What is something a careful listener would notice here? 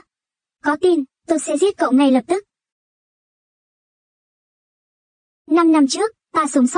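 A young man speaks firmly and clearly, close by.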